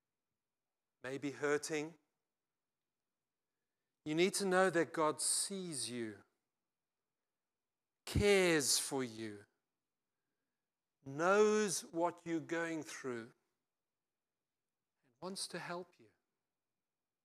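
An older man speaks with animation through a microphone, in bursts with long pauses.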